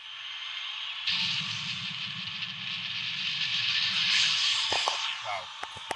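A crowd cheers and roars loudly through a television speaker.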